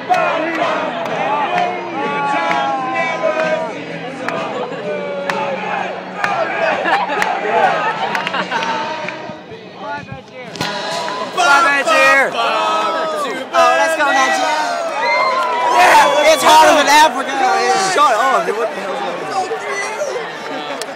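Young people nearby cheer and shout close by.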